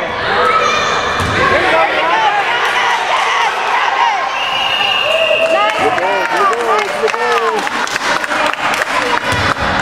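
Sneakers squeak sharply on a wooden floor in an echoing gym.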